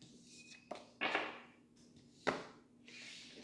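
Cards slide and tap on a table.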